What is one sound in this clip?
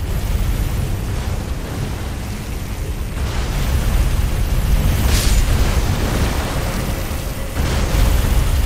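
A heavy sword swings and whooshes through the air.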